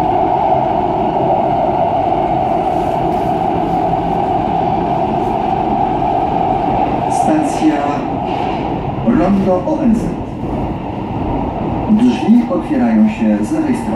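A subway train rumbles and roars steadily along the tracks.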